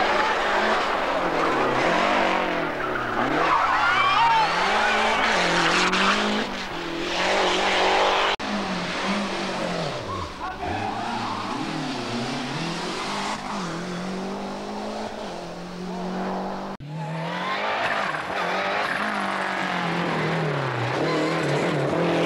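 A rally car engine revs hard and roars past up close.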